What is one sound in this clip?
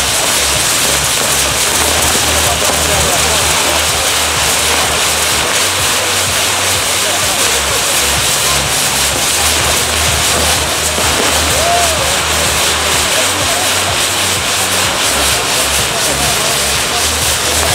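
Fireworks crackle and pop continuously in a dense, loud barrage.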